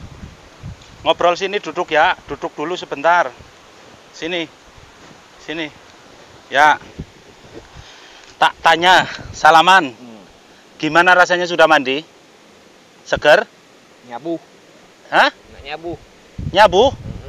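A man talks calmly and close by.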